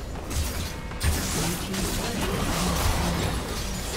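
A tower collapses with a loud crash.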